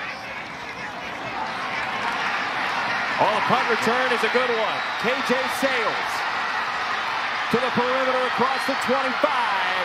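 A stadium crowd cheers loudly and the cheering swells.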